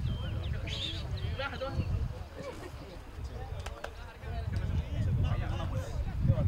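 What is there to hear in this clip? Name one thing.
Young players shout calls to each other across an open field outdoors.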